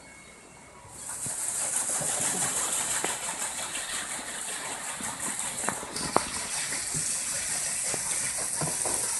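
Water splashes and rushes steadily close by.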